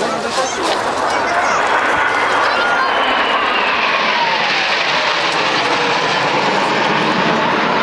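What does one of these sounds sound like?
A formation of jet trainers roars overhead, its pitch sliding down as it passes.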